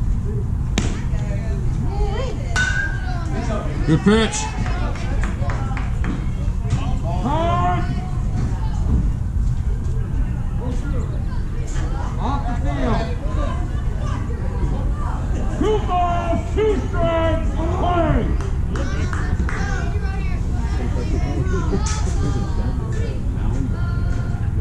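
Boys and men shout and call out across an open field.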